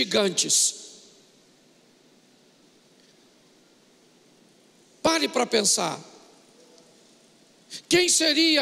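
An older man speaks with emphasis into a microphone, in short bursts with long pauses.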